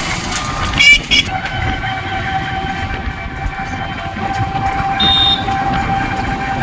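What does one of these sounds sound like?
A small motor rickshaw engine whines steadily while driving along a road.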